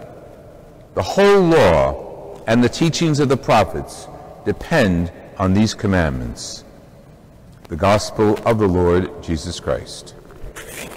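A man sings a chant through a microphone in a large echoing hall.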